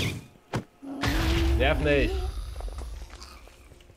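A fireball explodes with a loud, rumbling boom.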